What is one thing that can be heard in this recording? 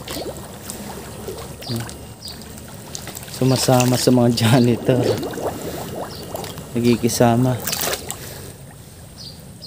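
Water splashes as a man wades through a shallow stream.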